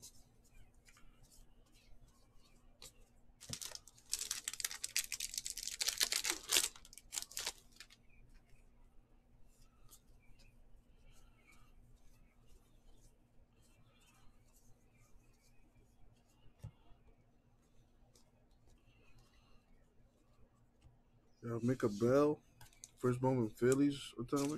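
Trading cards softly slide and click against each other.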